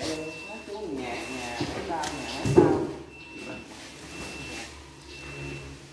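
Heavy sacks thump and rustle as they are lifted and dropped.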